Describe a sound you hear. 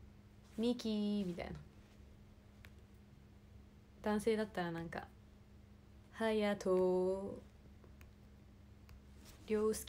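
A young woman speaks softly in short bursts, close to a microphone.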